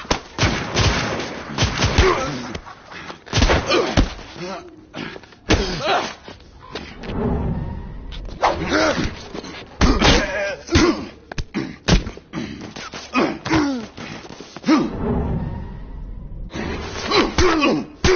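Heavy blows and scuffles thud sharply, over and over.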